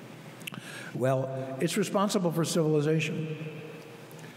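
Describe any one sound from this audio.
An elderly man reads aloud calmly through a microphone in a room with some echo.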